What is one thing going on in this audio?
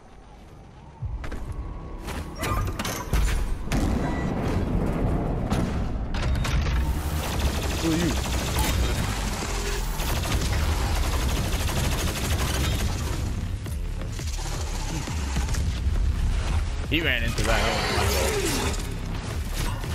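Heavy gunfire blasts rapidly.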